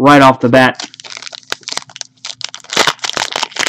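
A plastic wrapper crinkles as it is torn open.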